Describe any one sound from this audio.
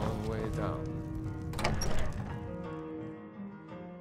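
A heavy wooden door creaks open and thuds.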